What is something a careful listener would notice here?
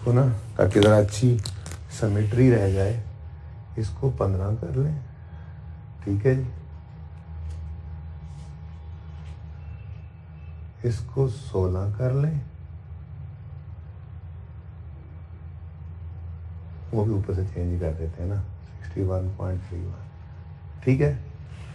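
A man lectures calmly, close to a microphone.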